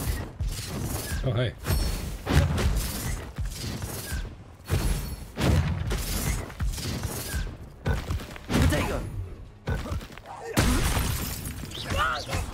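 Magic spells whoosh and crackle in repeated bursts.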